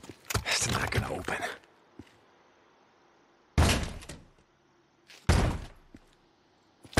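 A metal gate rattles and bangs as it is forced open.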